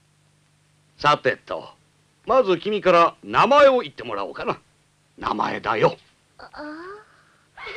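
A young boy speaks hesitantly.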